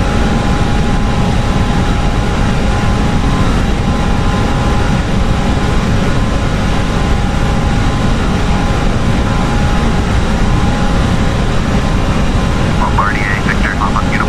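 Jet engines drone steadily and low.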